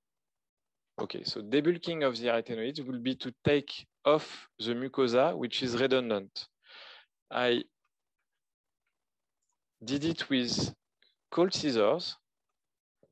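A man speaks calmly through an online call microphone, explaining at length.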